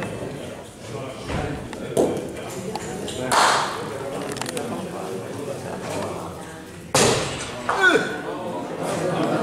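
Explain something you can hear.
A crowd of spectators murmurs and chatters in an echoing hall.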